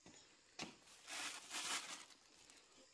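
Things rustle inside a woven basket.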